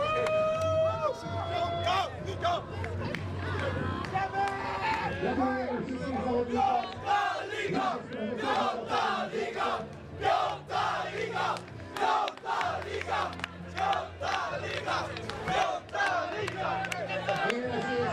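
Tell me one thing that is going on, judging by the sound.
A group of young men sing and chant loudly together outdoors.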